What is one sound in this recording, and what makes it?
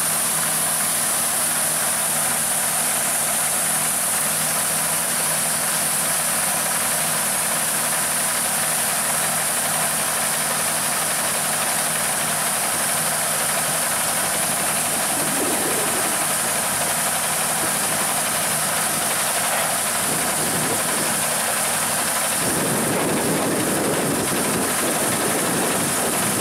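A tractor engine idles with a steady low hum.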